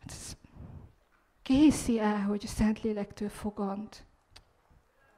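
A young woman speaks with animation into a microphone.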